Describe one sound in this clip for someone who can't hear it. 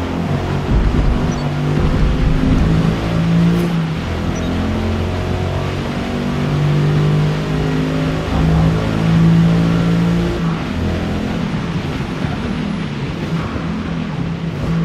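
A car engine roars, rising in pitch as it speeds up and dropping at each gear change.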